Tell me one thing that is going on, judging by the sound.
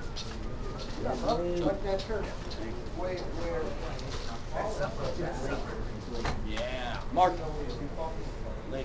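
Teenage boys talk and call out nearby.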